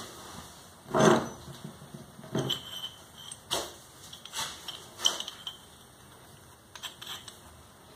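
A metal rod clinks as it is picked up and handled.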